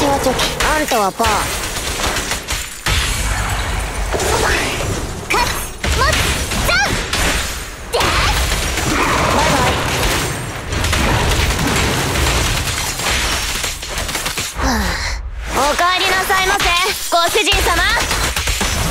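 Blades clash and slash with sharp, ringing hits.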